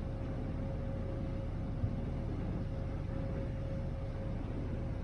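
Water churns and splashes in the wake of a ferry.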